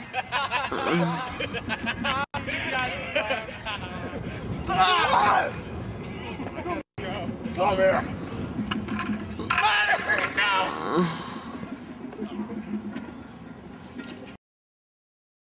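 Young men talk and shout with excitement nearby, outdoors.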